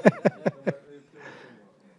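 A middle-aged man laughs briefly into a microphone.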